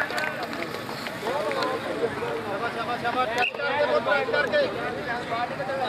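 A crowd of spectators murmurs and calls out in the distance outdoors.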